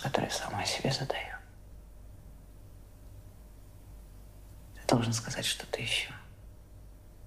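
A man speaks quietly in short phrases.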